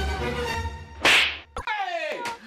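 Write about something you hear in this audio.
A hand slaps sharply against a face.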